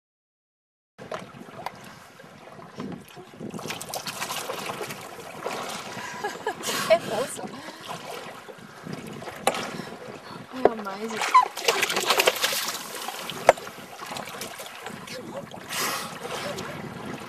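Water splashes and swishes close by.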